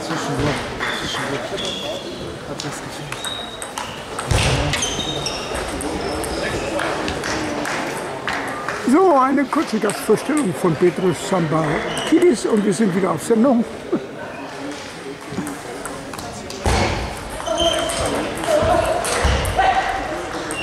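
A table tennis ball clicks sharply off paddles and the table in an echoing hall.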